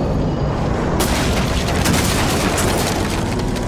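A wooden crate bursts apart with a loud crash.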